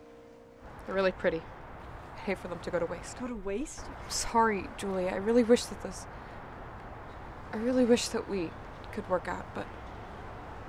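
A young woman speaks close by in a shaky, tearful voice.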